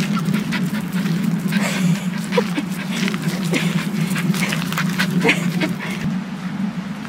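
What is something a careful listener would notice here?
Paws patter on a dirt path.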